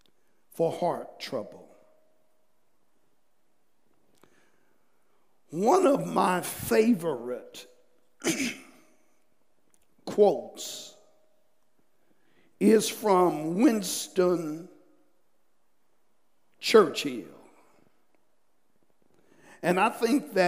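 A middle-aged man speaks calmly through a microphone in short phrases with pauses.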